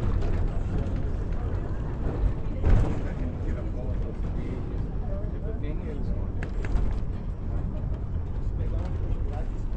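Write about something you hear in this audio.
A cable car rumbles along its track.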